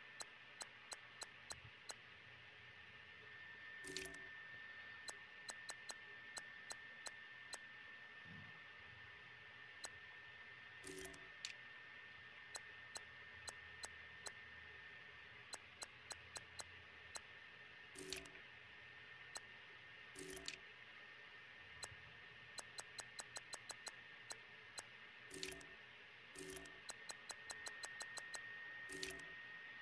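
Short electronic ticks click in quick runs as a game menu cursor moves.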